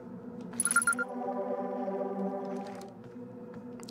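A wavering electronic signal tone hums briefly.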